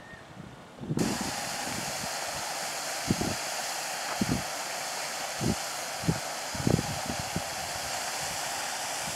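A fountain splashes steadily into a pond.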